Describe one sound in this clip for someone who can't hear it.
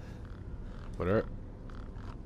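A young man speaks briefly into a headset microphone.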